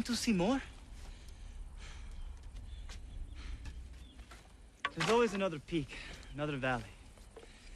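A man speaks calmly and thoughtfully, close by.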